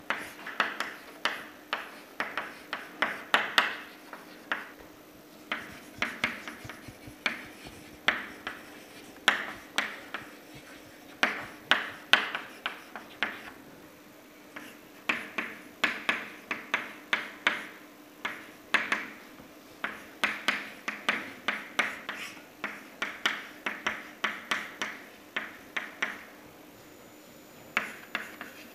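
Chalk taps and scrapes against a blackboard in quick bursts.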